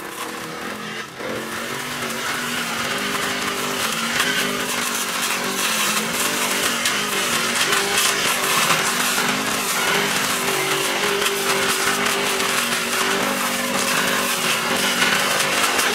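A petrol string trimmer whines steadily, its engine pitch wavering as it cuts.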